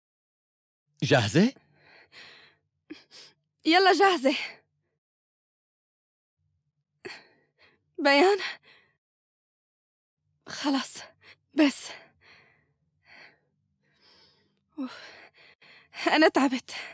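A young woman speaks loudly and with emotion nearby.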